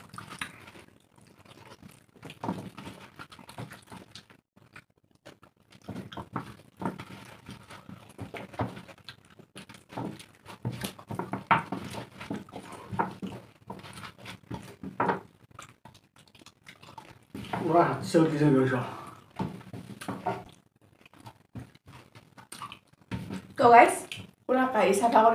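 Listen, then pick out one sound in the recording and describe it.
A man chews and slurps food loudly, close by.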